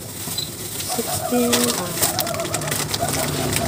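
Plastic packaging rustles and crinkles close by.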